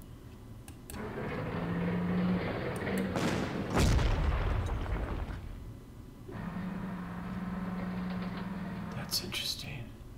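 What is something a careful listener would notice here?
A tank engine rumbles and clanks as it moves.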